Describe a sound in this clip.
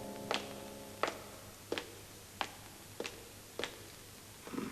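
Footsteps click sharply and evenly on a hard floor.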